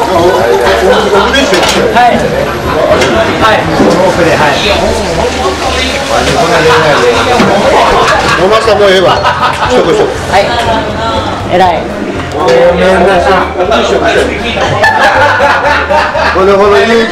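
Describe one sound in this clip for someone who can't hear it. Several adults chat and laugh nearby in a busy room.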